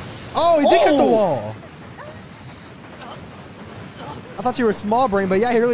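A young man exclaims in surprise, close to a microphone.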